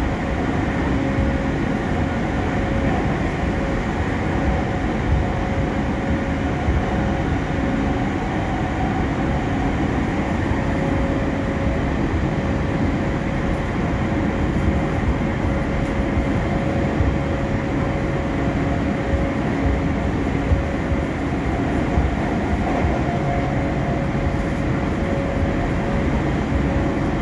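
A motor whines with a steady tone inside the carriage.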